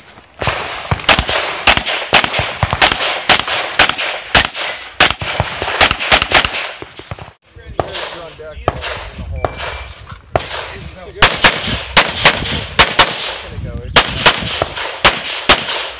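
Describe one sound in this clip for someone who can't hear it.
A pistol fires rapid shots outdoors.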